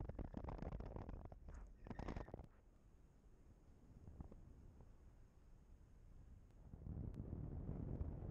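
Wind rushes and buffets past in open air.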